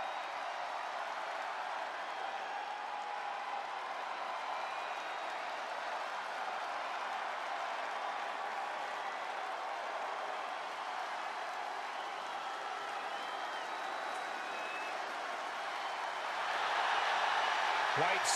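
A large crowd cheers steadily in a big echoing arena, swelling louder near the end.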